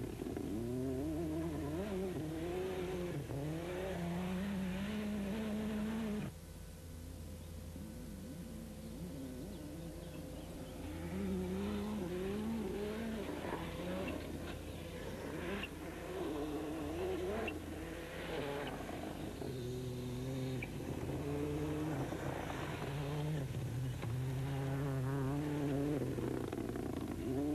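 A rally car engine roars and revs hard.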